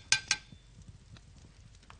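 Metal plates clink together.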